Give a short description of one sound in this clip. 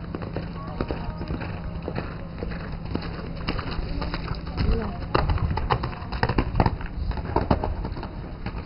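Hooves thud on soft sand as a horse canters past.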